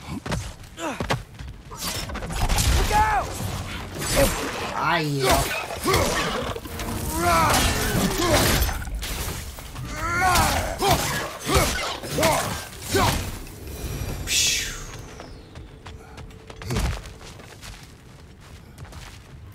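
Heavy footsteps thump on wooden boards.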